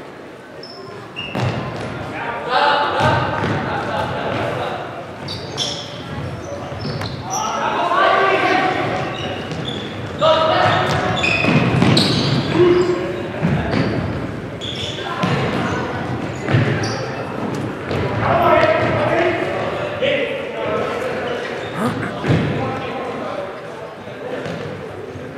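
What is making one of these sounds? A ball thumps as it is kicked.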